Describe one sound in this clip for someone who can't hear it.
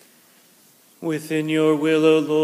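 A man begins to chant in a large, echoing hall.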